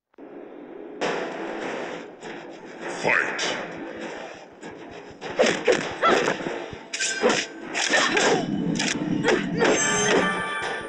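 Fighters strike each other with thudding blows.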